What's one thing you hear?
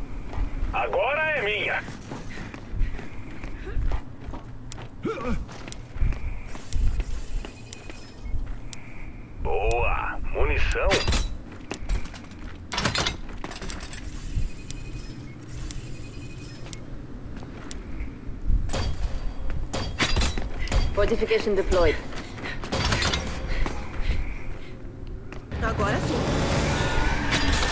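Heavy armoured footsteps thud on hard ground.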